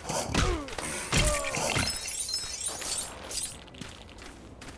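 Small plastic pieces scatter and jingle as a figure breaks apart.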